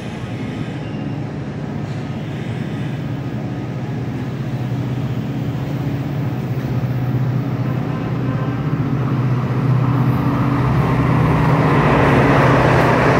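A train approaches on the tracks with a growing rumble.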